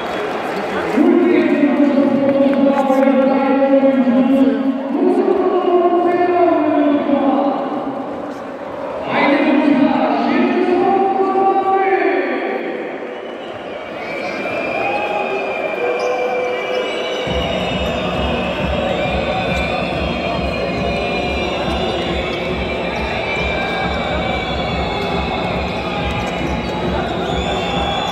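A large crowd chants and sings loudly in an echoing arena.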